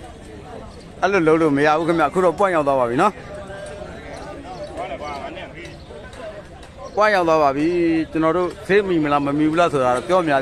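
A man calls out loudly in a long, drawn-out voice.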